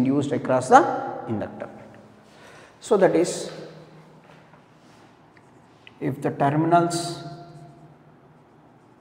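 A young man speaks calmly and explains, close by.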